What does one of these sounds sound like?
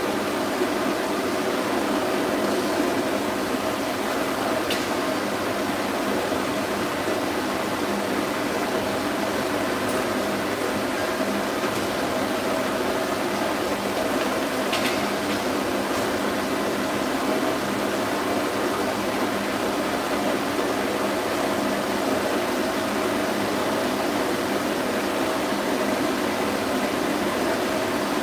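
A pet dryer blows air with a steady loud whoosh.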